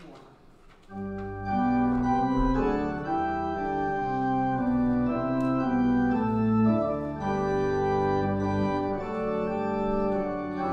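An organ plays a slow hymn.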